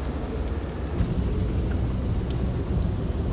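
A car engine hums steadily from inside the cab.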